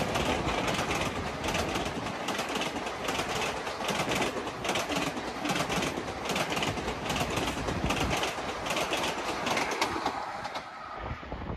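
A passenger train rushes past at high speed.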